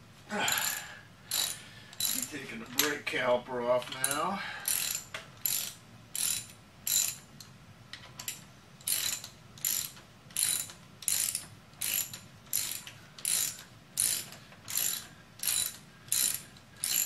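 A ratchet wrench clicks in quick, regular bursts.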